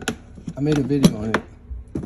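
A plastic latch clicks and snaps.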